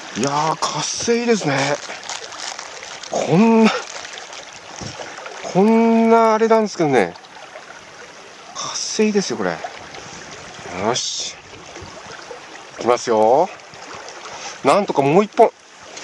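A stream flows and ripples steadily close by.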